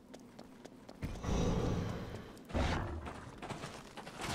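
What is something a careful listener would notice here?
Loud blasts and blows burst out in a fight.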